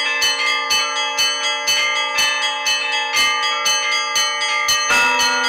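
Church bells ring out in a quick, steady rhythm, each stroke ringing on.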